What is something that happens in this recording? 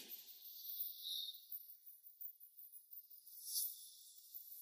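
A young woman whispers.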